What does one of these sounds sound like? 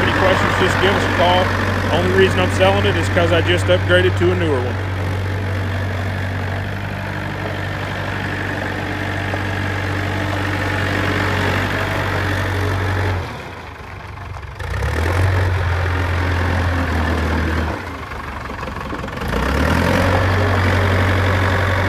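A diesel engine idles and rumbles steadily, briefly dropping off twice.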